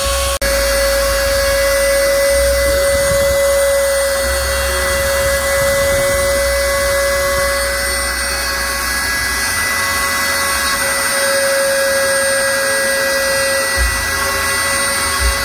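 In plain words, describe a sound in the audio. A router spindle whines steadily at high speed.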